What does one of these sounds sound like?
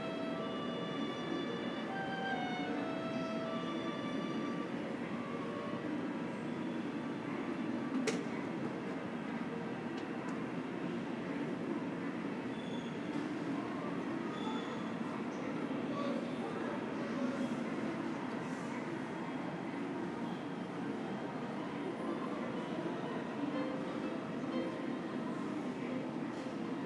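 Distant voices murmur and echo through a large, empty hall.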